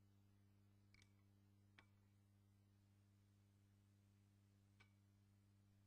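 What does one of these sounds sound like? A tonearm clicks softly as it settles on its rest.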